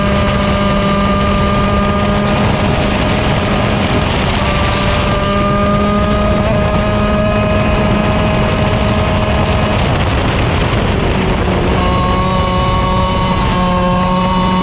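A kart engine buzzes loudly up close, its pitch rising and falling.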